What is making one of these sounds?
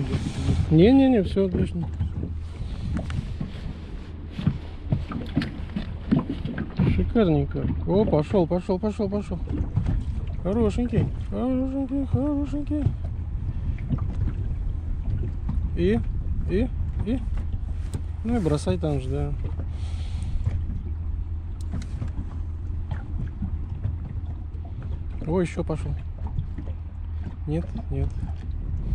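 Water laps gently against the side of a boat.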